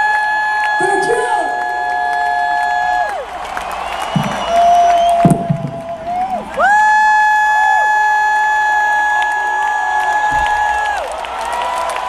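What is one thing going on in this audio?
A man sings long held notes through loudspeakers.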